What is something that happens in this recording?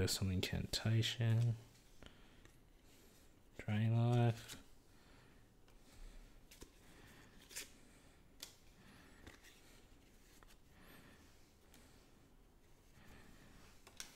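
Playing cards softly rustle and slide against each other in hands.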